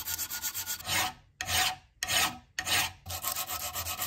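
A metal file rasps in long, rhythmic strokes.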